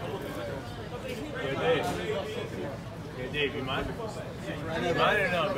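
Several people chatter close by outdoors.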